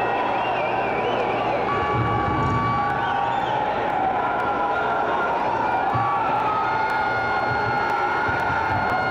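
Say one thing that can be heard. A distorted electric guitar plays loudly through amplifiers in a large hall.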